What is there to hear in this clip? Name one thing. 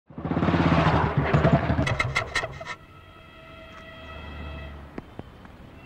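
A motorcycle engine rumbles close by and then stops.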